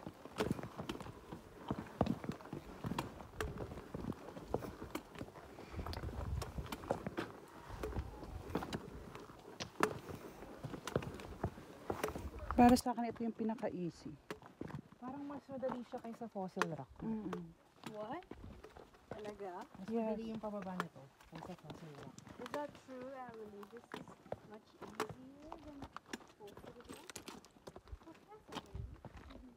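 Footsteps crunch on loose gravel and stones.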